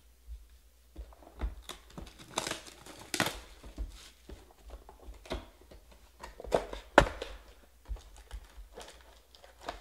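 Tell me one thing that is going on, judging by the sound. Cardboard boxes rustle and scrape as hands open them.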